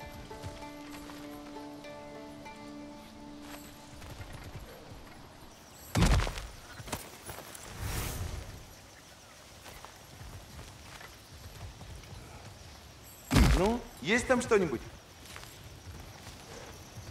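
Heavy footsteps crunch over rocky ground.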